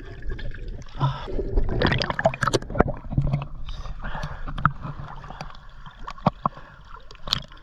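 Water sloshes and splashes close by.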